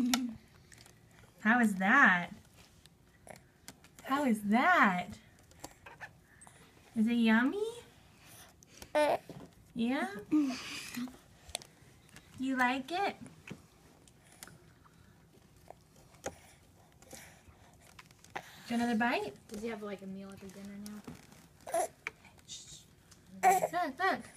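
A baby coos and babbles in short, high-pitched bursts close by.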